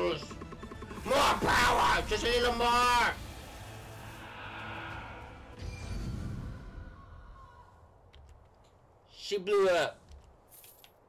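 A man shouts loudly and excitedly into a microphone.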